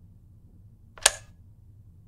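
A loud electronic chime sounds once.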